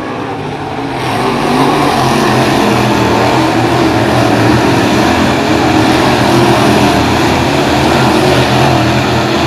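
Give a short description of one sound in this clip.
Race cars race past up close with loud roaring engines.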